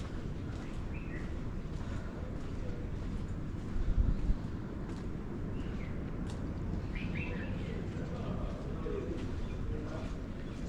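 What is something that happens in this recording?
Footsteps tap on a brick path.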